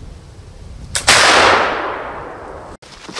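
A rifle fires once with a loud boom that echoes through the woods.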